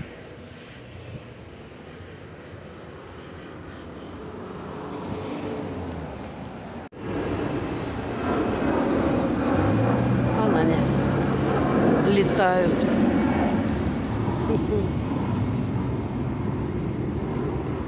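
Traffic hums along a nearby street.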